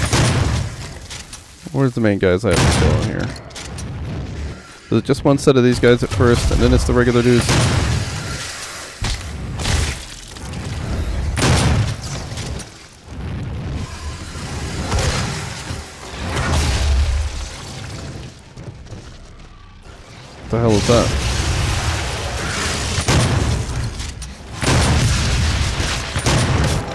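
Guns fire in loud, booming blasts.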